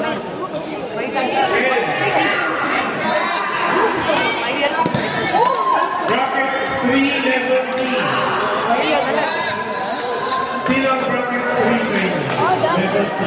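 Many men and women talk and call out in a large echoing hall.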